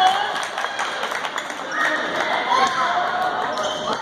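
A ball bounces on a hardwood floor in a large echoing gym.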